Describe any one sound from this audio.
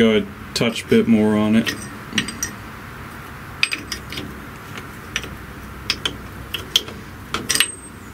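A wrench clicks and scrapes against a metal bolt.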